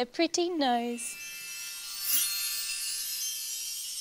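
A magical sparkling chime shimmers.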